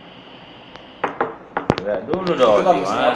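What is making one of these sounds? Small objects knock on a table.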